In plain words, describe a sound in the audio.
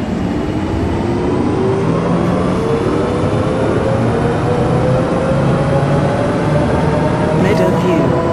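A bus engine hums and rises steadily in pitch as it speeds up.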